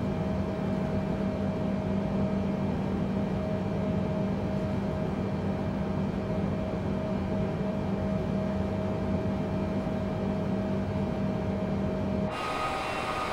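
Jet engines hum steadily, heard from inside a cockpit.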